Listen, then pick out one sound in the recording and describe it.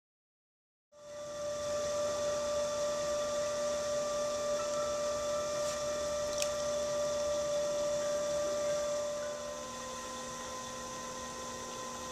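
A potter's wheel hums steadily as it spins.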